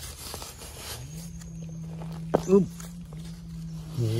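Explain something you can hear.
A small knife scrapes and digs into dry soil.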